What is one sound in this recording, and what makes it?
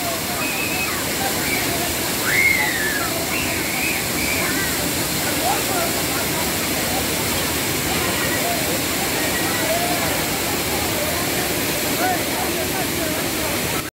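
A waterfall roars steadily close by.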